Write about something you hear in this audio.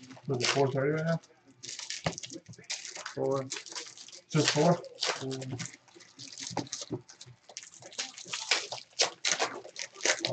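Foil card packs crinkle and rustle as hands sort them.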